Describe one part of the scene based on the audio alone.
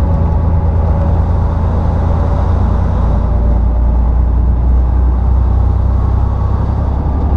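A semi-trailer truck rumbles past close by.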